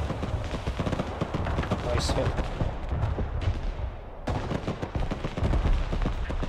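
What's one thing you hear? Explosions boom in a distant battle.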